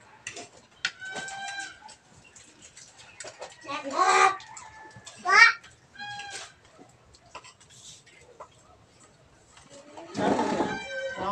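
Children talk and call out in high voices nearby.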